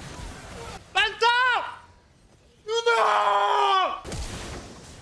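A young man shouts excitedly into a close microphone.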